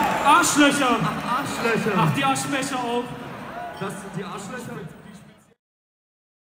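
A large crowd sings and chants loudly in a big echoing hall, then fades out.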